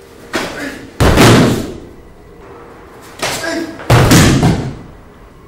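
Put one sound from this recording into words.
A body slams heavily onto a padded mat.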